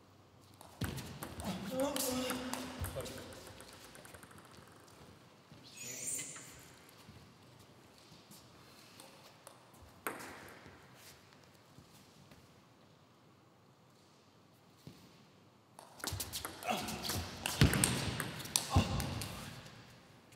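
A table tennis ball clicks quickly back and forth off paddles and a table in a hall with some echo.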